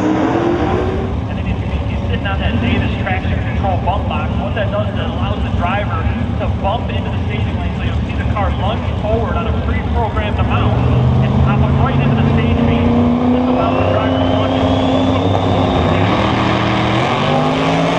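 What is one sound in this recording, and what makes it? Powerful race car engines rumble and rev loudly outdoors.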